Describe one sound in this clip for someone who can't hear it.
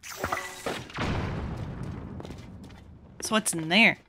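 A bomb explodes with a deep, rumbling boom.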